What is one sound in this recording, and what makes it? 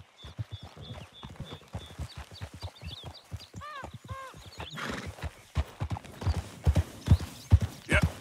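Horse hooves thud steadily on a dirt path.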